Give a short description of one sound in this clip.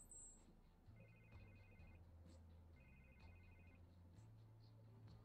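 A phone rings with a repeating electronic tone.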